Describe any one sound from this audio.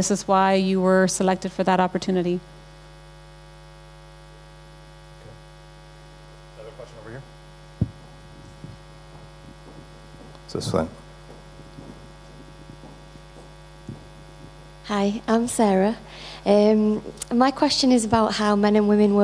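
A woman speaks calmly into a microphone, with her voice carried over loudspeakers.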